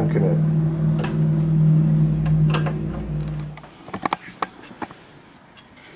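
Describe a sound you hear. Plastic parts click and knock as hands pull a circuit board from a device.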